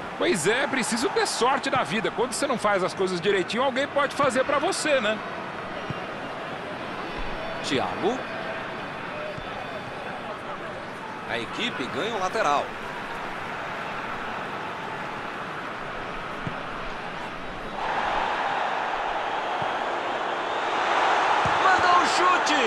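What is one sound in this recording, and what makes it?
A stadium crowd roars steadily, swelling louder near the end.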